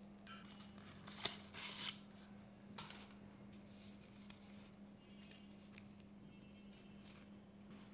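Paper cards and plastic wrap crinkle in hand.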